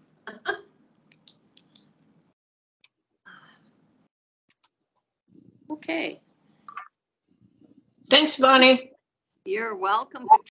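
An elderly woman speaks with animation over an online call.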